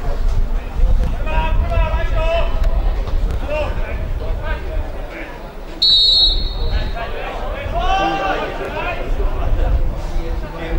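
Men shout across an outdoor field.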